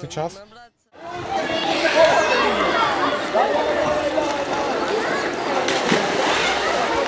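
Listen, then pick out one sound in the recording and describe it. Children shout and laugh in a pool.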